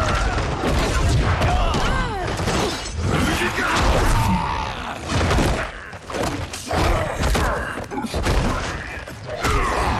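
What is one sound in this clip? Fighters trade heavy blows that thud and crack.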